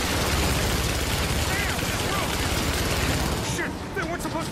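A vehicle engine roars over rough ground.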